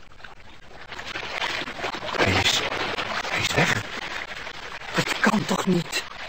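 An old radio plays a crackly broadcast through its loudspeaker.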